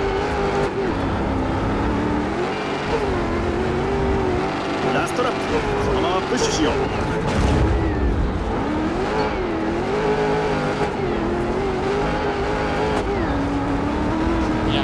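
Tyres skid and crunch over loose dirt.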